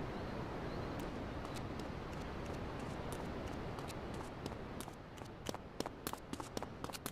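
Running footsteps patter on grass and pavement.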